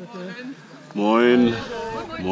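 An elderly man speaks briefly, close by.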